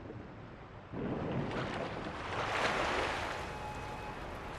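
Water splashes and churns as a swimmer dives under.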